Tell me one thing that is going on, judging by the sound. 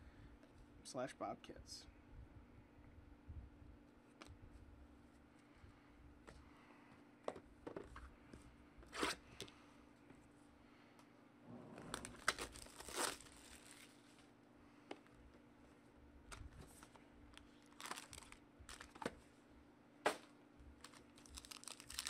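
Cardboard boxes and cards knock and slide against a table.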